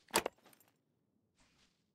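A lock clicks open.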